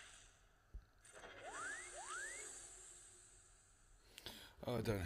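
Lightsabers hum and swoosh.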